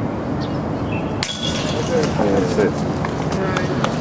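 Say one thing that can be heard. A flying disc clatters into metal chains in the distance.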